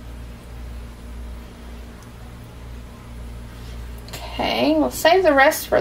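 Thick liquid pours slowly in a thin stream.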